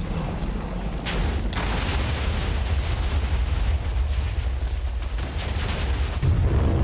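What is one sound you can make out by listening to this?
Many explosions boom and rumble in quick succession.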